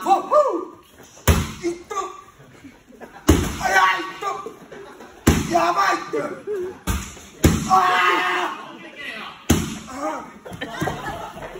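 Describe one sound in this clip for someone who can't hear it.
A young man shouts with effort.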